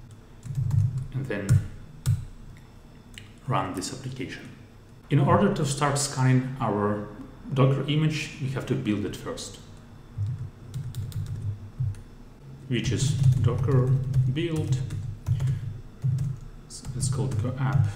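Laptop keys click under typing fingers.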